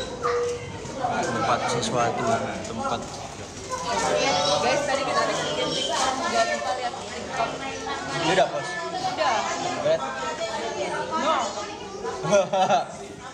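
A young man talks close by, in a casual way.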